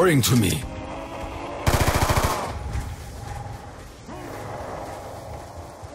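Single pistol shots ring out.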